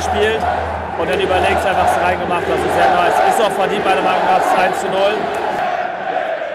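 A crowd cheers and roars excitedly.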